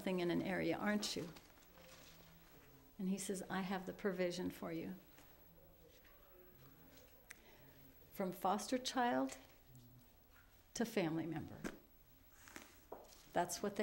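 An older woman speaks calmly into a nearby microphone, in short phrases with pauses.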